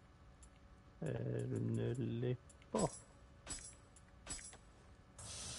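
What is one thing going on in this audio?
Short game menu clicks and chimes sound.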